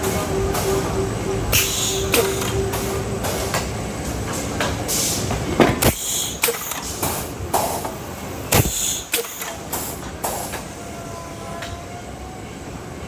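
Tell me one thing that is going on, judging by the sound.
A machine whirs and rumbles steadily.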